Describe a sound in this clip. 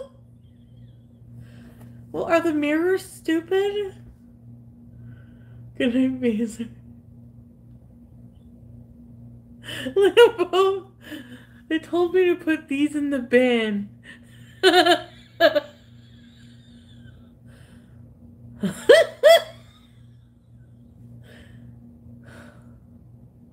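A young woman laughs heartily.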